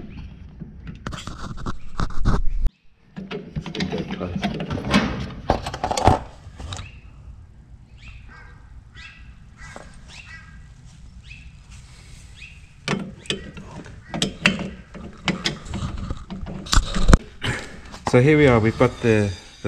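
Metal tools clink and click against a brake drum.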